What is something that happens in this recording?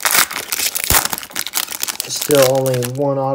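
A foil wrapper crinkles and rustles loudly as it is torn open.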